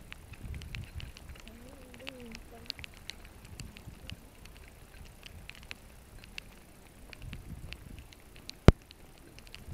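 Water drips and patters outdoors.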